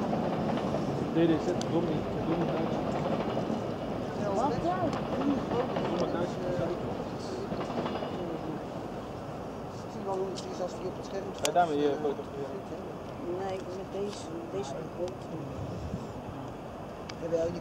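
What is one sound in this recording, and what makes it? Train wheels squeal and clatter over rail joints.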